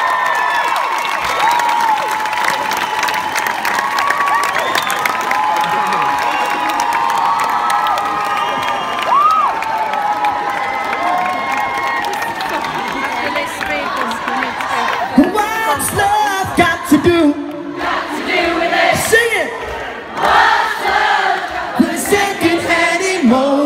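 A crowd of young women sings along and shouts close by.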